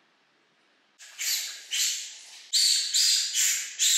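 A balloon squeaks as hands handle it.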